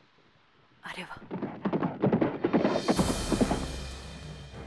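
A horse gallops toward the listener.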